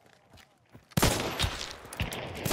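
A revolver fires a loud shot.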